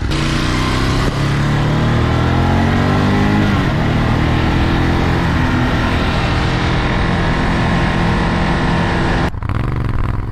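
A Ducati V-twin motorcycle cruises along a road.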